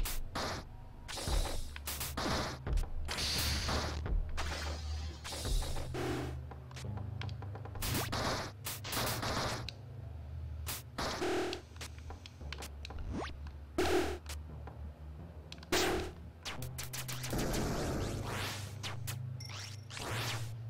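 Rapid shots and magic blasts fire again and again.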